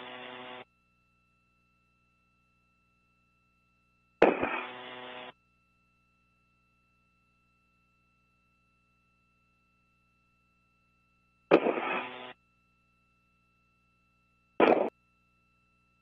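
A man speaks briefly over a crackly radio link.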